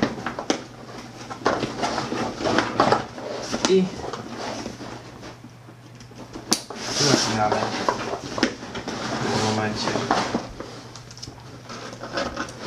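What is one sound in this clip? Stiff fabric of a bag rustles.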